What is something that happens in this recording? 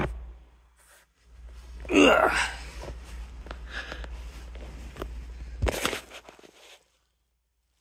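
Cloth rustles and brushes close by.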